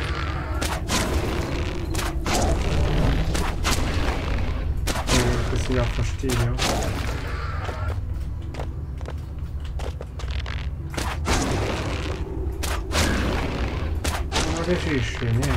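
Explosions pop and crackle.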